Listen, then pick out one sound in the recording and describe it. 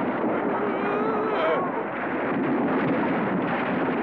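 A wooden bridge collapses with a loud crash.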